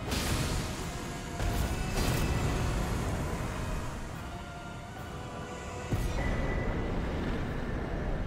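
Game sword strikes clash and thud loudly.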